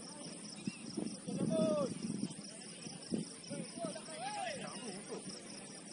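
Young men shout to each other across an open outdoor pitch, some distance away.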